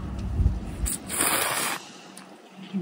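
A woman slurps noodles loudly.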